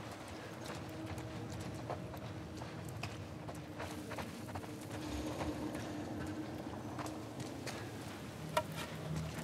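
Footsteps crunch and scuff on a gritty floor.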